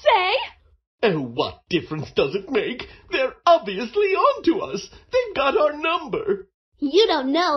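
A young man speaks in a whiny voice.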